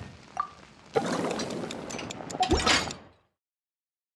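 Food sizzles in a pot over a fire.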